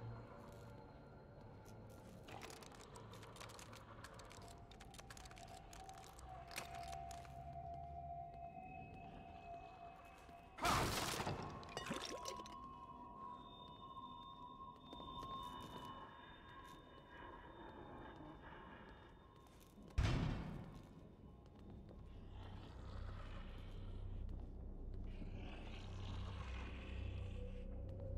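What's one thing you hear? Footsteps creep softly across a hard floor.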